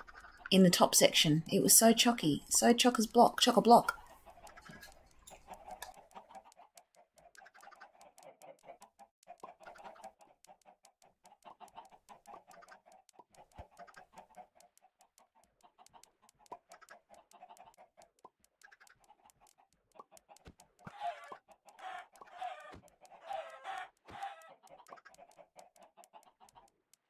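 Many chickens cluck and squawk continuously.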